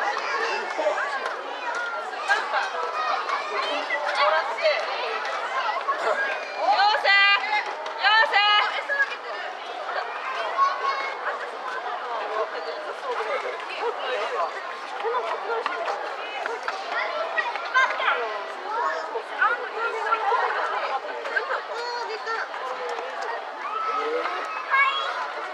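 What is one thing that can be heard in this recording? Children and adults chatter nearby outdoors.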